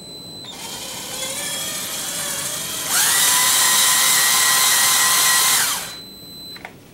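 An electric motor hums, speeds up to a loud whine, then quickly winds down.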